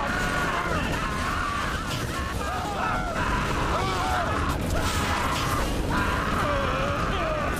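A heavy gun fires rapid bursts.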